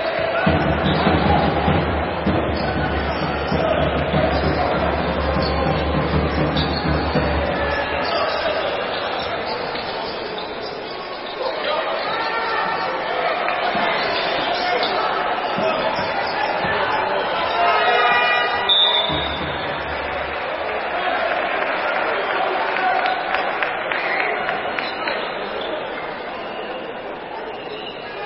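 Spectators murmur and chatter in a large echoing hall.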